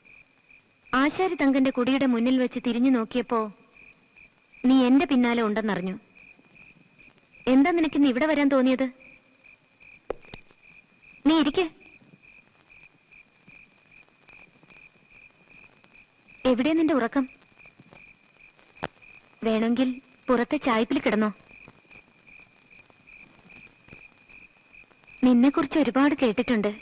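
A man speaks slowly and gravely, in short bursts with long pauses.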